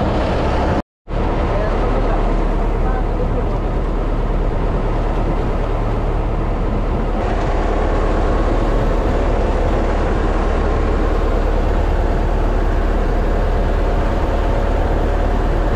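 Water rushes and splashes against the side of a moving boat.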